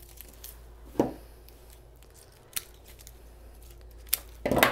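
Garden pruners snip through stems.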